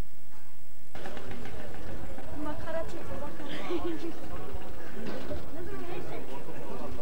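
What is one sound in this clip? A crowd of men murmurs and chatters outdoors.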